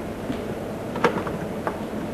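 A chess piece is set down on a wooden board with a light knock.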